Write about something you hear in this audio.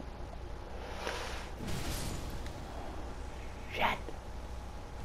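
A blade swishes through the air and strikes with sharp hits.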